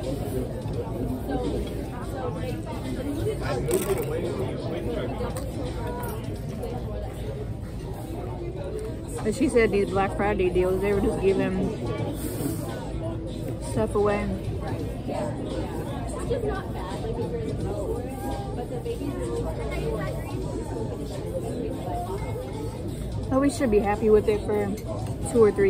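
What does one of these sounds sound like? A woman crunches on crisp tortilla chips close by.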